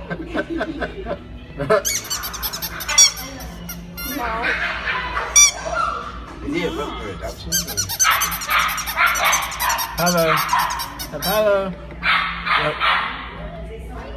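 Squeaky toys squeak in short, high, wavering bursts.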